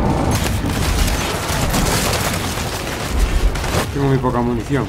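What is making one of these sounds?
Gunfire rattles in a noisy battle.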